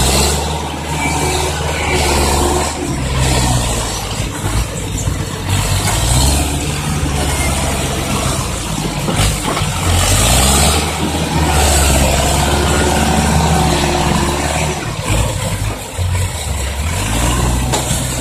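A second truck's engine revs as it drives closer.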